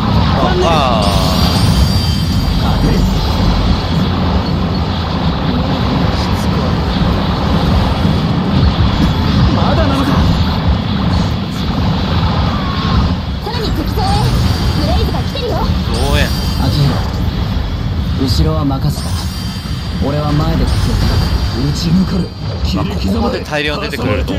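Rapid laser gunfire and explosions crackle and boom.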